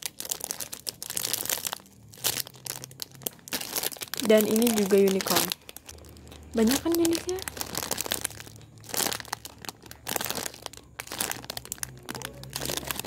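Plastic wrappers crinkle and rustle under a hand.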